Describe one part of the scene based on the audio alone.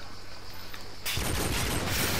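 A rifle fires a shot that cracks sharply.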